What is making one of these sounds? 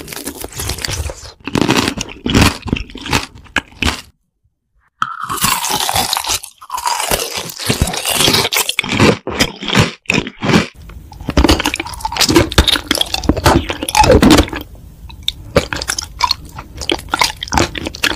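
Teeth crunch on hard candy.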